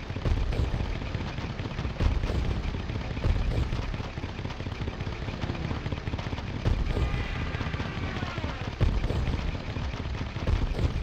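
Machine guns rattle in quick bursts.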